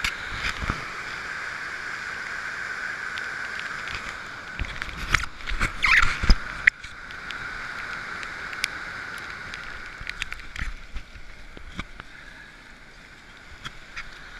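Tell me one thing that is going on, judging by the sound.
A stream rushes and splashes loudly.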